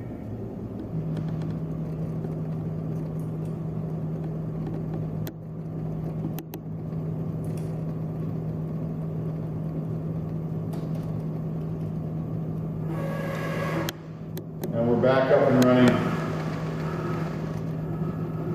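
A machine motor hums steadily.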